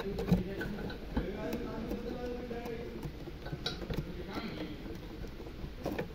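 A metal valve clicks as it is turned by hand.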